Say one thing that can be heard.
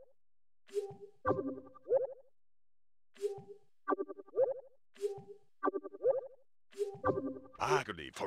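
Short electronic menu chimes beep in quick succession.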